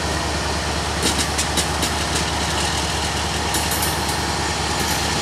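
Train wheels squeal and clank softly on the rails.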